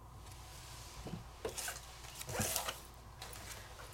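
A stiff card taps and slides on a table.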